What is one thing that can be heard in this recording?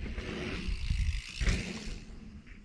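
Bicycle tyres land with a thud on dirt.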